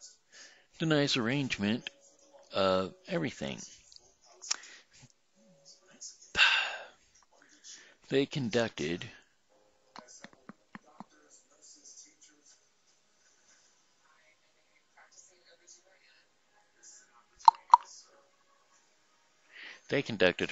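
An older man talks calmly and close up through a headset microphone, with pauses.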